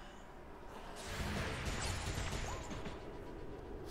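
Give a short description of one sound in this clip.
A laser gun fires with a buzzing hiss.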